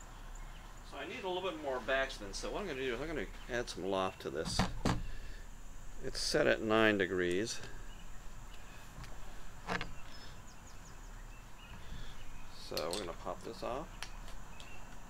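An older man talks nearby in a calm voice.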